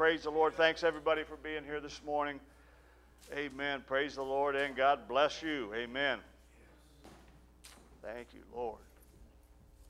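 A middle-aged man speaks calmly into a microphone, heard through a loudspeaker in a large room.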